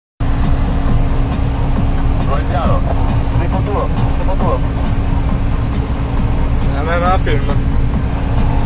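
A combine harvester's engine roars steadily close by.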